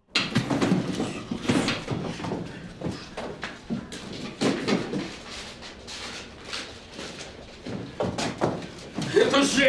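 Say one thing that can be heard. Papers rustle and flutter.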